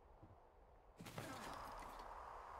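Glass shatters as a window breaks.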